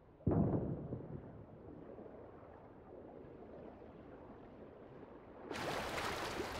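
Muffled water rumbles underwater.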